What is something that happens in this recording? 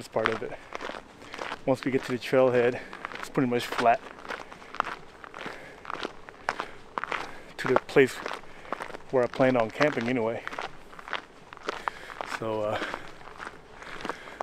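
Dry leaves crunch underfoot as a man walks.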